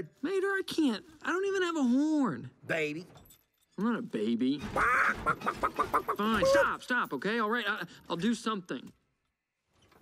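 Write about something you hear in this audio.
A man talks with animation in a drawling voice.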